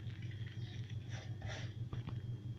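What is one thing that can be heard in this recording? A wooden spoon stirs chopped vegetables in a metal bowl.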